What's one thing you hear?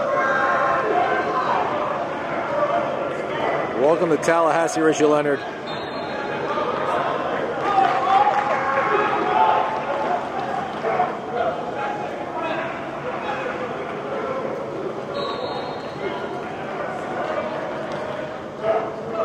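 Young men chatter and call out across a large echoing hall.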